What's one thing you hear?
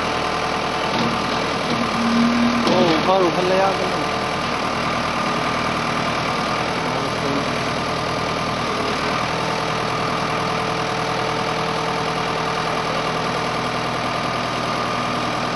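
Hydraulics whine as a loader arm lifts and lowers a bucket.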